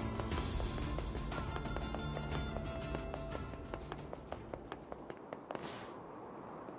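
Footsteps crunch quickly over rocky ground.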